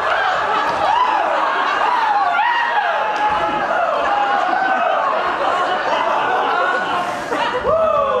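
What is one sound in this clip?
A performer sings on stage through a microphone in a large hall.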